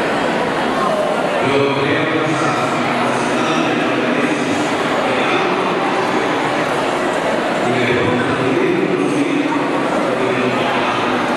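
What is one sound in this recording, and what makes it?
A man speaks calmly and reads aloud in an echoing hall.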